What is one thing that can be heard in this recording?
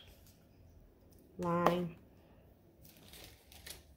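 A small glass bottle is set down on a table with a light knock.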